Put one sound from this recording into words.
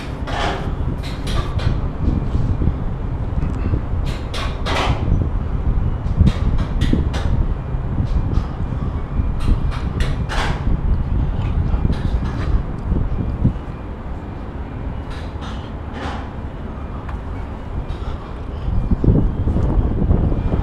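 Shoes and hands scrape and knock on steel girders.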